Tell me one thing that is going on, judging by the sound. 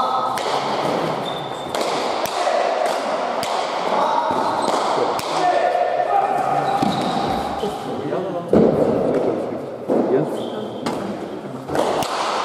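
A ball smacks sharply against a wall and echoes in a large hall.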